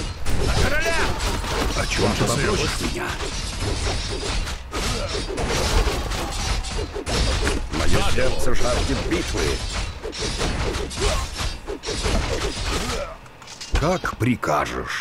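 Swords clash and hack in a fierce battle.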